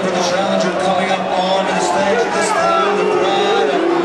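A man speaks into a microphone over loudspeakers.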